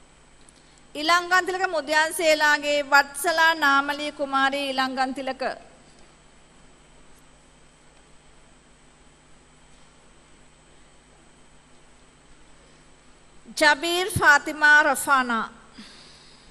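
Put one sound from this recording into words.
A woman reads out over a loudspeaker in a large hall.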